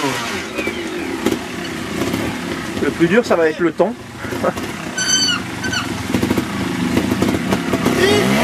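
A trials motorcycle engine revs in sharp bursts as it climbs over rocks.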